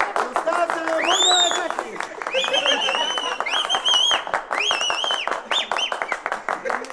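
A man whistles loudly through his fingers.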